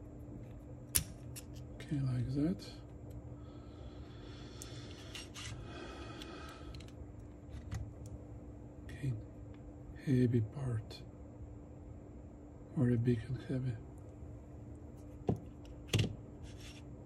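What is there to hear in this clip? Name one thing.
Small metal parts click and clink as they are handled.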